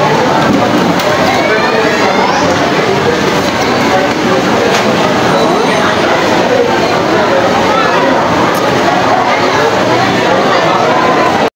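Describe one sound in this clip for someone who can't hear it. Many voices chatter and mingle nearby in a busy, crowded room.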